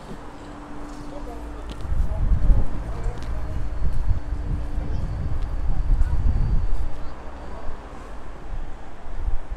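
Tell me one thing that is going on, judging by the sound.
Wind buffets loudly outdoors, rumbling low and gusting.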